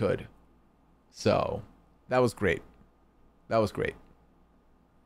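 A man speaks briefly into a close microphone in short bursts.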